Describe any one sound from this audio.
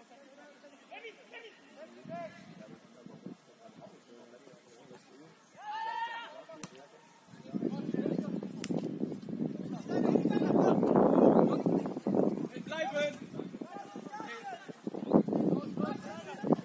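Young men shout and call out across an open field in the distance.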